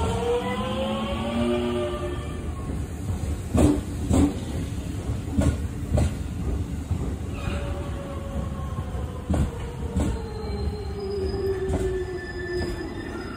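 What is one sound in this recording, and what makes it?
Train brakes squeal with gliding whines.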